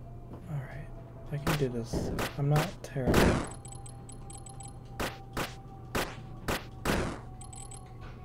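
Quick blade slashes whoosh and strike.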